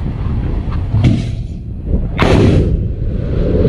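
A missile launches with a sudden, loud blast.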